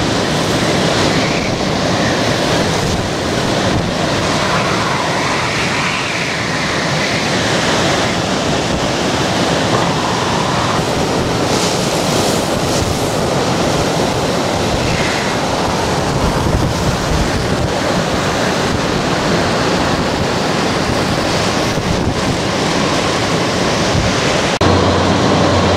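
Heavy rain lashes down in the wind.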